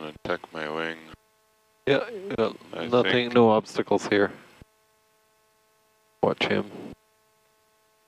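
A man speaks calmly over a cockpit radio.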